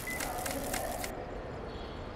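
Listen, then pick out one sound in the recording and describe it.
A hand-cranked device clicks and ratchets rapidly.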